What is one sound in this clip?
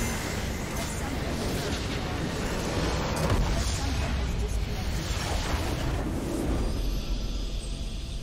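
A building crumbles and explodes with loud rumbling blasts.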